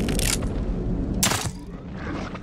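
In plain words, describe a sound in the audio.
A crossbow fires a bolt with a sharp snap.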